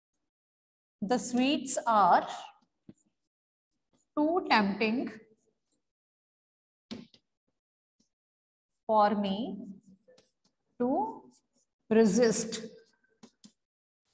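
A woman speaks clearly and slowly, as if teaching.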